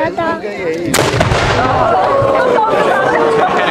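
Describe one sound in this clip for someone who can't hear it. A cannon fires with a loud boom that rolls and echoes away.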